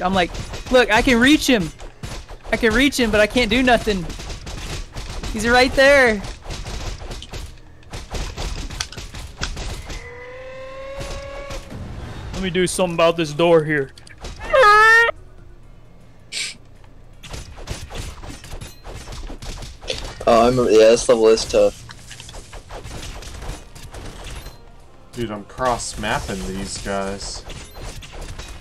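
Weapons clash and thud in a game's fight.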